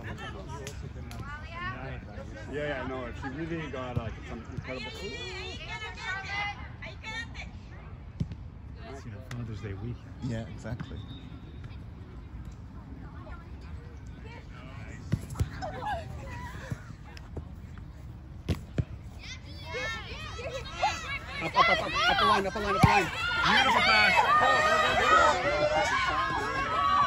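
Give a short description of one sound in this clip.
Young women shout and call to one another outdoors.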